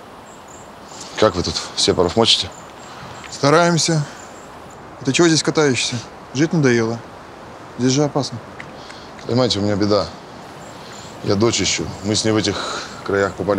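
A man answers in a low, calm voice close by.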